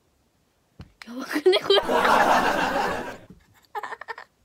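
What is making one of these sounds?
A young girl laughs loudly.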